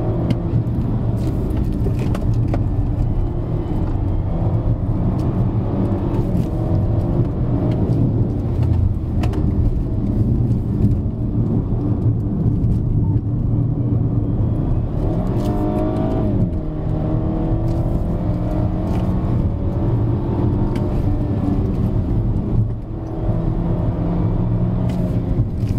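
A car engine hums and rises in pitch as the car speeds up.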